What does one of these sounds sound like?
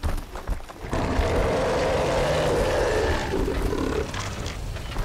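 An explosion bursts with a loud, roaring blast.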